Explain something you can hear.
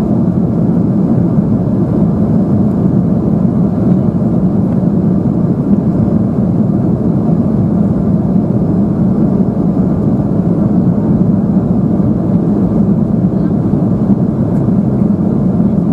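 Jet engines roar with a steady, deep drone inside an airplane cabin in flight.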